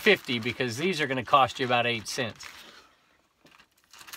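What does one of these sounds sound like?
A strip of backing peels off a plastic bag's adhesive flap.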